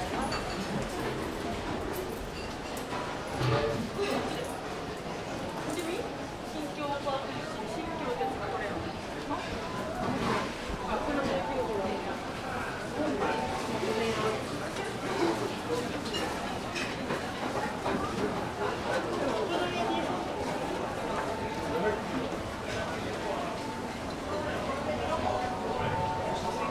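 Many voices of passers-by murmur nearby.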